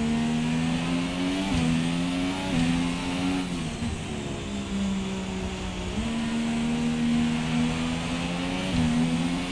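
A racing car engine whines at high revs, its pitch rising and dropping sharply as gears shift.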